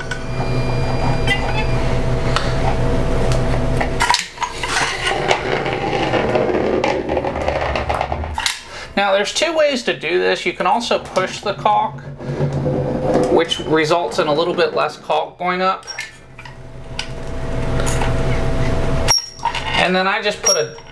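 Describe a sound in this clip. A caulking gun clicks as its trigger is squeezed.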